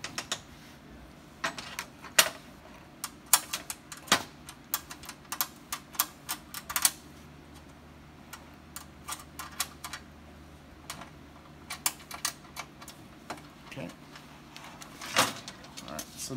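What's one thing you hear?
Sheet metal panels clink and rattle as hands move them.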